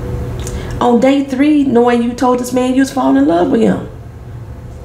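A woman speaks close to a microphone in an emotional, wavering voice.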